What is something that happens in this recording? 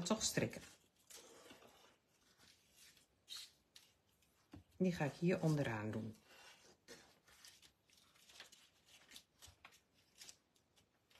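Stiff paper rustles and scrapes as it is handled.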